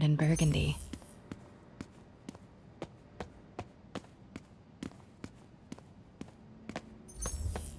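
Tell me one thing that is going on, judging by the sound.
Footsteps click steadily on a hard floor.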